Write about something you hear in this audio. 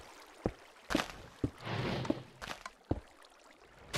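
A pickaxe chips at stone blocks.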